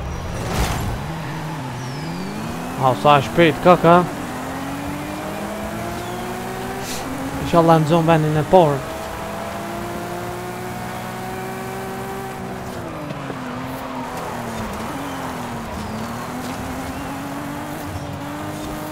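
A car engine revs up and shifts through the gears as it races.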